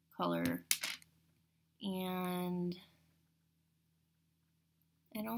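Small metal pieces click together.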